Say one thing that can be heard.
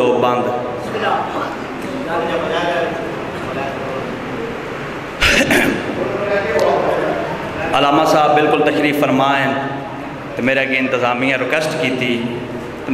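A man speaks with passion into a microphone, heard through loudspeakers in a reverberant hall.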